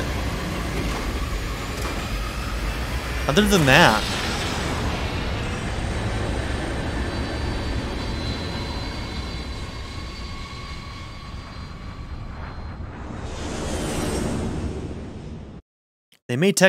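A hovering craft's engines roar with a low rumble.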